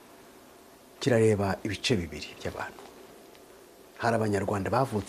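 A man speaks calmly and clearly into a close microphone, with pauses.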